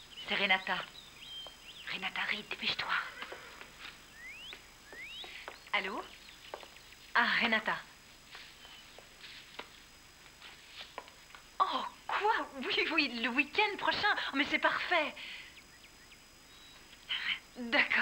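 A woman talks on a telephone with emotion, heard close.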